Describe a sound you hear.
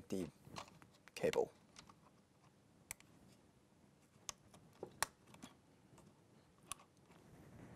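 Plastic parts click and snap as hands fit a connector into place.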